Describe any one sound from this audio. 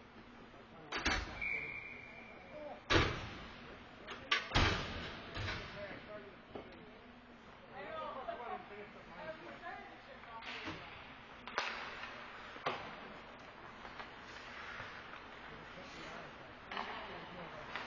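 Hockey sticks clack against the puck and boards in a large echoing rink.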